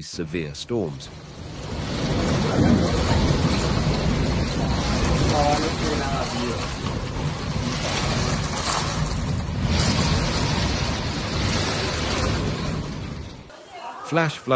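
Heavy rain pours down in a roaring wind.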